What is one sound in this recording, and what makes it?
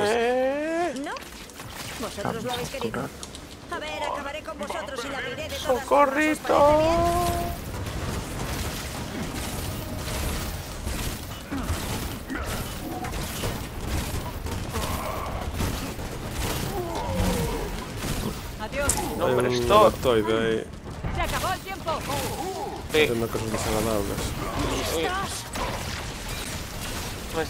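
Gunfire and energy blasts crackle in quick bursts.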